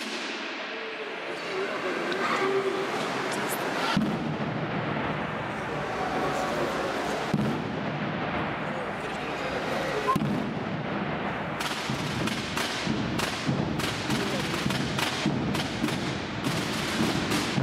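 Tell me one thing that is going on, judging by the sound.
A drum band plays together in a large echoing hall.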